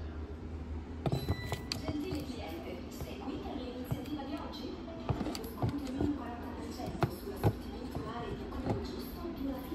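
A shoe knocks lightly against cardboard boxes as it is handled.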